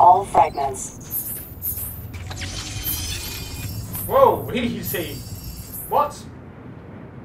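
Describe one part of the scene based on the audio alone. An electronic energy effect whooshes and chimes.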